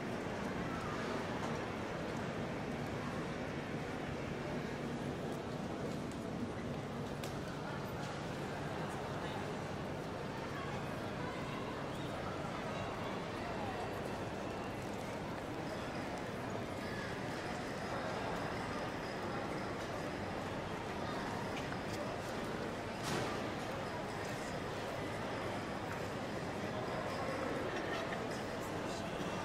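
Many people's voices murmur and echo through a large hall.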